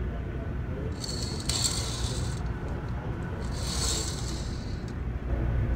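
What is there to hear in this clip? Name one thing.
A curtain rustles as a hand moves it.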